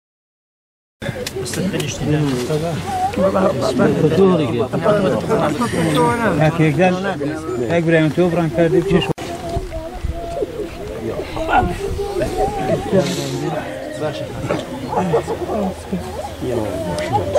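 A group of men pray aloud together nearby.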